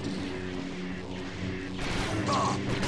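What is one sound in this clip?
A lightsaber clashes in a fight.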